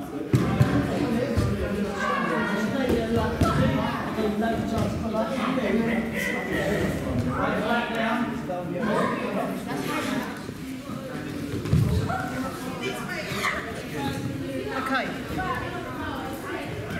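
Men and women talk at a distance in a large echoing hall.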